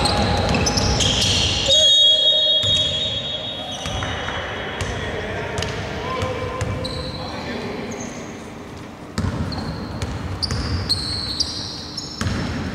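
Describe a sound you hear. Sneakers squeak sharply on a hard court, echoing in a large hall.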